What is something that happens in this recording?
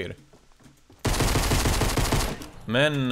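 Gunshots fire rapidly in quick bursts.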